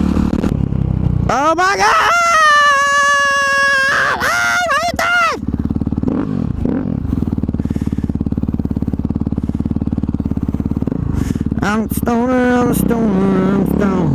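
A dirt bike engine revs loudly up and down, close by.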